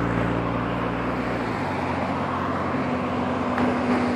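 A car drives past close by with a whoosh of tyres.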